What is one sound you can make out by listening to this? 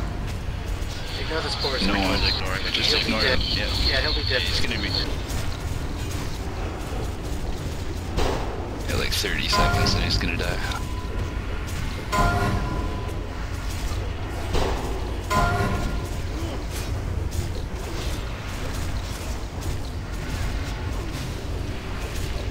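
Spell effects and weapon hits clash and crackle in a game fight.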